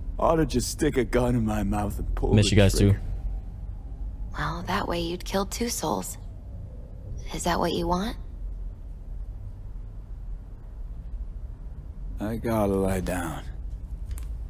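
A young woman speaks calmly and close by.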